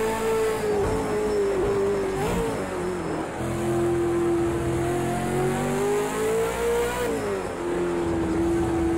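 A race car engine roars close up, its pitch rising and falling as it shifts gears.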